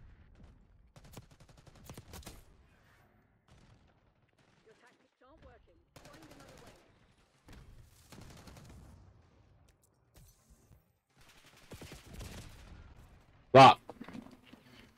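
Gunfire from a video game rattles in quick bursts.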